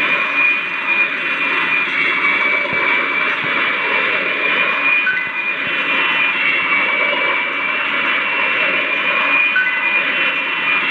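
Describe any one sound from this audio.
The engines of a simulated jet airliner roar in flight.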